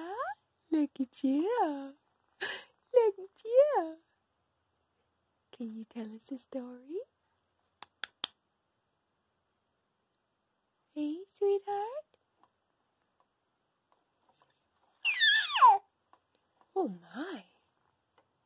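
A baby babbles and squeals up close.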